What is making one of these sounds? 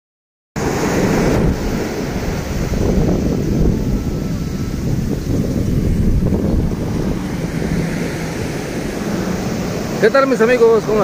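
Waves break and wash up on a beach.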